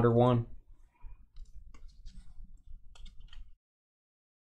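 Trading cards shuffle and flick between hands.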